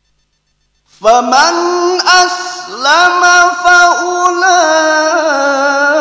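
A man chants loudly and melodiously into a microphone, with long held notes.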